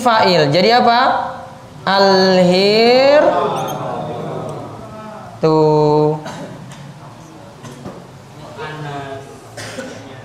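A man chants in a drawn-out, melodic voice through a microphone.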